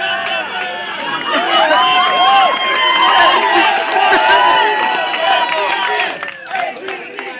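A crowd cheers and shouts loudly outdoors.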